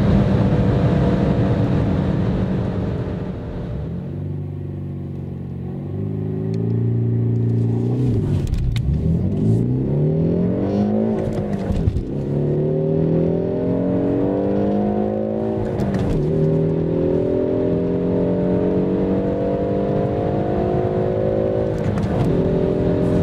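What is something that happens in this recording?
A car engine revs hard, rising in pitch and dropping briefly at each gear change.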